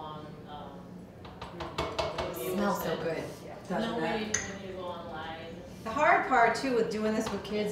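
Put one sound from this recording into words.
A spoon clinks against a pot.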